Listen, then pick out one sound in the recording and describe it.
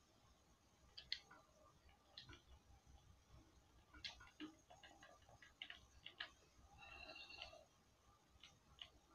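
Video game effects click and crack through a television speaker.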